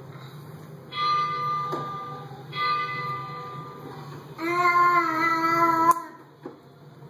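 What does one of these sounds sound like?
A toy car plays short electronic tunes.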